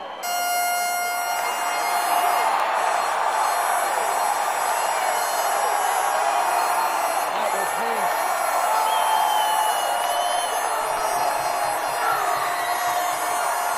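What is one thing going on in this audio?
A band plays loud music through loudspeakers.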